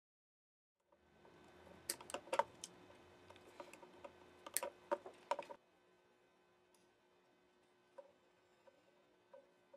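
Pliers click and snap against metal parts and wires.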